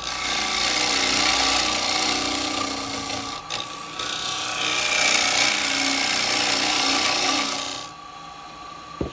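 A lathe hums steadily.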